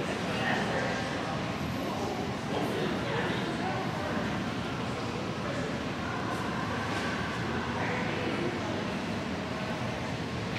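Several voices murmur indistinctly in a large echoing hall.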